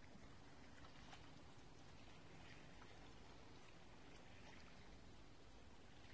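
Calm water laps gently, outdoors in a light breeze.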